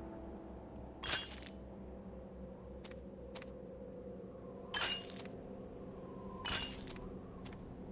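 Bright chimes ring out as crystals are collected.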